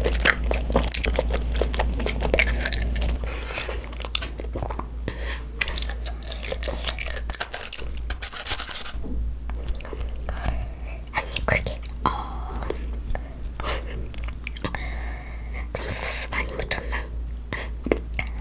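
A young girl speaks softly close to a microphone.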